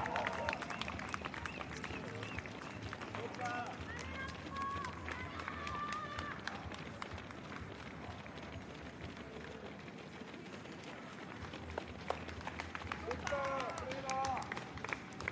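Many runners' footsteps patter quickly on pavement.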